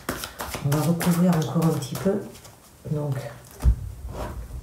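Playing cards riffle and shuffle.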